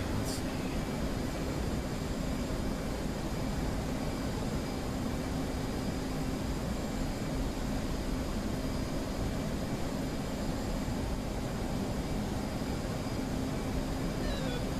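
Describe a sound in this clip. A jet engine roars steadily with a low hum.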